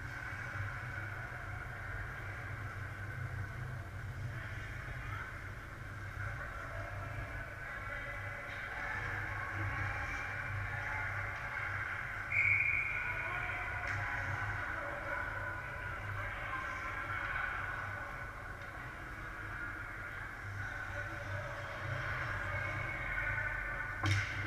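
Ice skates scrape and glide across the ice in a large echoing rink.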